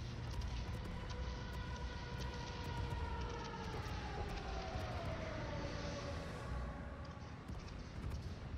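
Aircraft engines drone overhead with a falling pitch as they pass.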